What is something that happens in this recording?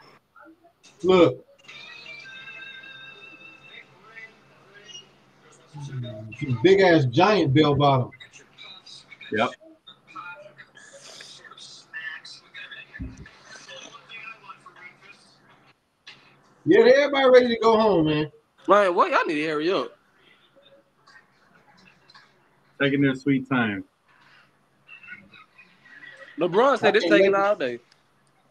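A man talks with animation over an online call, in bursts.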